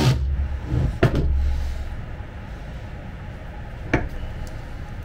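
Wood knocks sharply.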